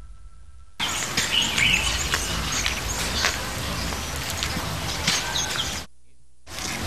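Sandals scuff on a dirt path.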